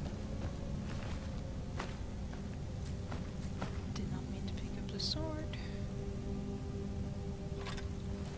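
Short soft clicks tick now and then as items are picked from a list.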